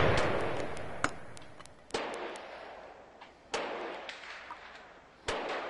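Short sharp clicks sound now and then, each trailing off in a fading ring.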